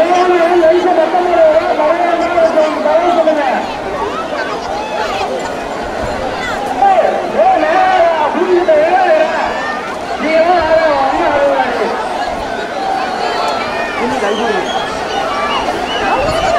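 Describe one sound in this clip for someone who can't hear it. A crowd of young men and boys shouts and chants outdoors.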